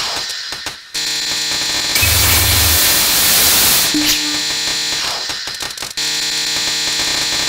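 Rapid electronic shots fire continuously.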